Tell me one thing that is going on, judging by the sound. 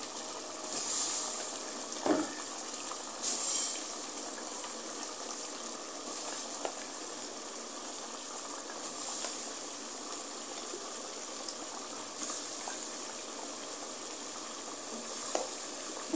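Vegetable pieces drop softly into a metal pot.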